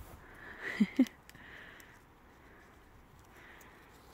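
A hand plucks berries from a rustling bush.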